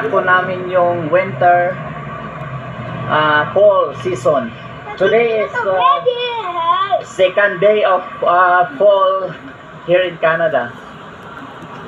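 An older man sings close to a phone microphone.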